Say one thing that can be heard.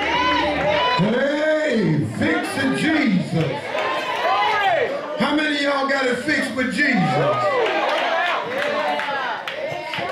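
A man preaches with animation into a microphone, heard through loudspeakers.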